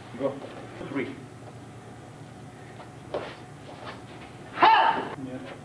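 Bodies thud onto a padded mat.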